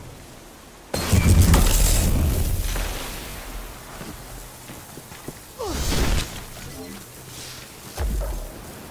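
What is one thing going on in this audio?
An electric weapon crackles and zaps in sharp bursts.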